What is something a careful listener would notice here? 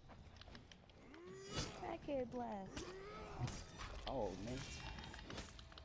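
A warrior grunts and shouts in battle.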